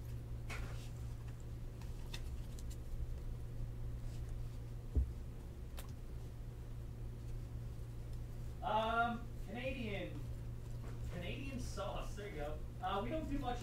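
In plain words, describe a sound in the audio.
Trading cards rustle and flick softly between fingers.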